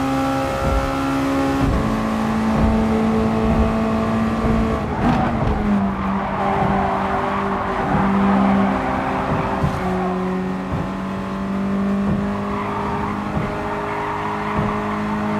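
A racing car engine roars at high revs and shifts through gears.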